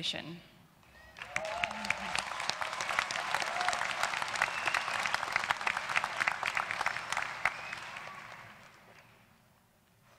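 An audience applauds loudly and cheers.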